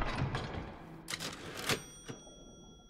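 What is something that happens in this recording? A typewriter clacks briefly.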